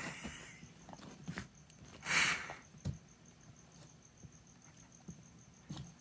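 A dog mouths a ball with soft wet chewing sounds.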